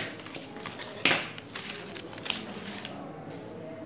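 Scissors clatter down onto a table.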